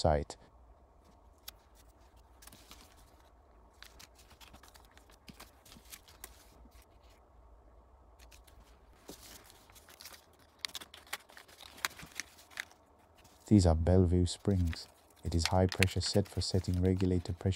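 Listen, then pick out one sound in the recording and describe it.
A plastic bag crinkles and rustles in hands.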